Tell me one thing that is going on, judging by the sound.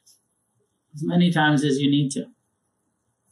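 A man speaks calmly and briefly into a nearby microphone.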